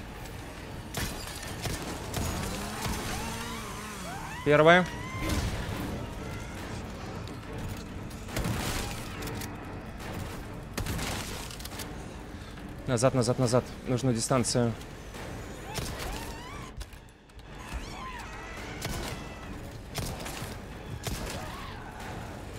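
Gunshots ring out now and then.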